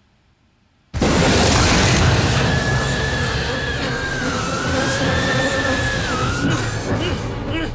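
A television hisses loudly with static.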